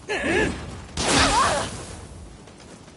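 A magic blast bursts with a bright whoosh.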